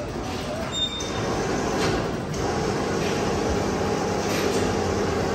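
An overhead crane hoist hums steadily as it lifts a heavy metal gear.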